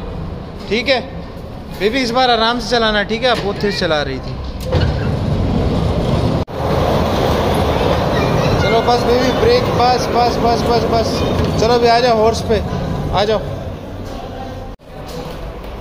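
A small ride train hums and rattles along its track.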